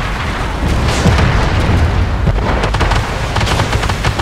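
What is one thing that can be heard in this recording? Shells explode loudly against armour.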